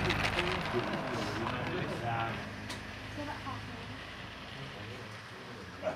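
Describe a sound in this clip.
A model train rumbles and clicks along its tracks.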